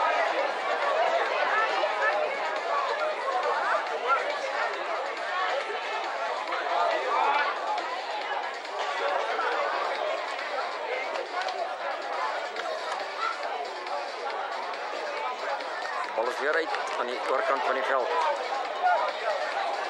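A crowd of spectators chatters and shouts nearby outdoors.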